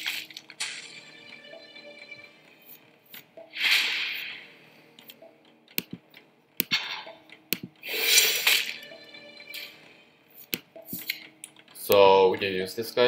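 Electronic whooshes and chimes sound as cards are played.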